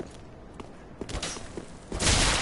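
Swords clash and scrape with metal hits.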